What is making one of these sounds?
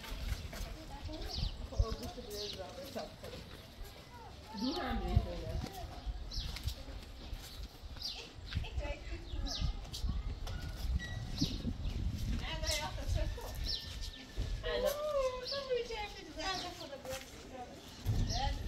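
Footsteps scuff on a paved yard outdoors.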